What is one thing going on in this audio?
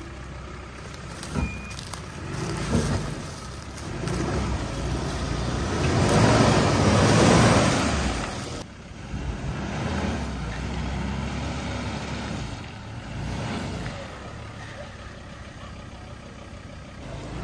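An engine revs hard and strains.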